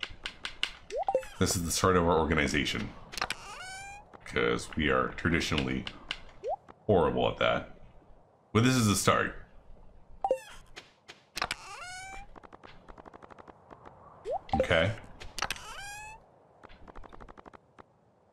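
Short electronic chimes and clicks play from a game.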